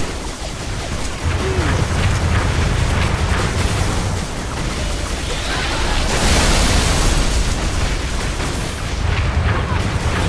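Plasma weapons zap and crackle.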